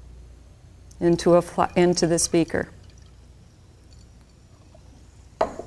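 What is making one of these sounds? Liquid pours from one glass flask into another.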